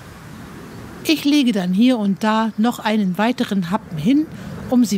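An older woman speaks calmly close by.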